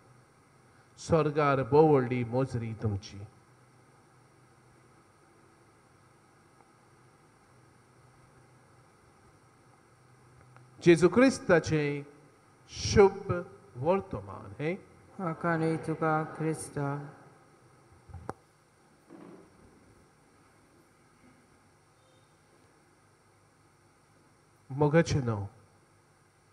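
A man speaks slowly and solemnly into a microphone, with long pauses.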